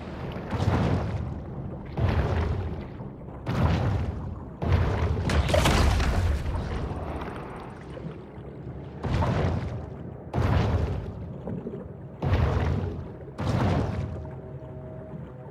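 Water whooshes in repeated surges as a large shark swims.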